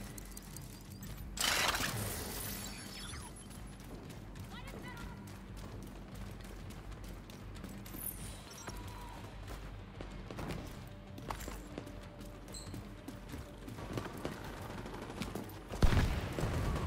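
Footsteps thud quickly on the ground.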